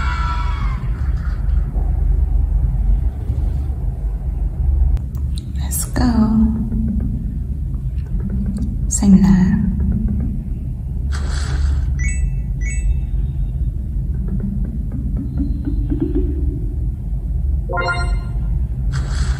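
Bright electronic chimes and jingles play from a mobile game.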